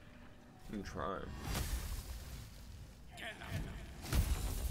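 A second young man answers with animation.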